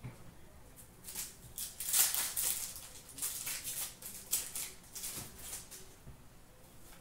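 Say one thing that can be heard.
Plastic sleeves rustle and crinkle in someone's hands.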